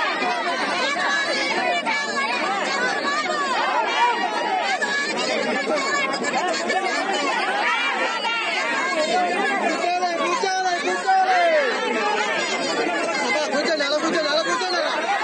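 A crowd of men and women chant and shout slogans loudly outdoors.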